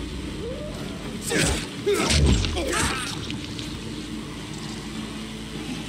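A blade swings and strikes flesh with wet thuds.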